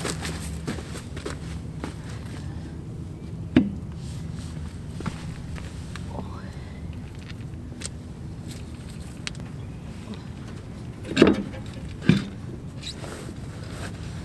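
A low steady wind rumbles outdoors.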